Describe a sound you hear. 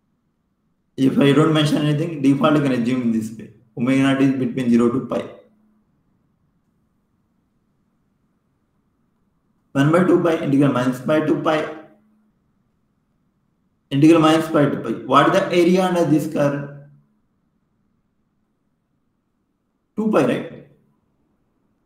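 A young man speaks calmly through an online call, in short phrases with pauses.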